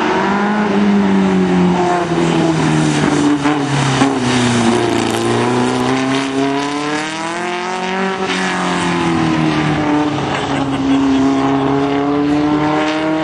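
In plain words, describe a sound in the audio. An air-cooled VW flat-four dune buggy engine revs up and down as the buggy races through tight turns.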